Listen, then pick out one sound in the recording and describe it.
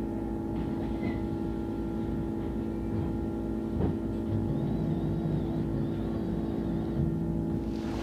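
A bus engine idles with a steady low hum close by.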